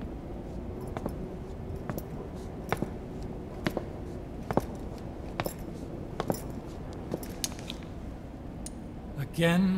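Footsteps thud slowly on a hard floor.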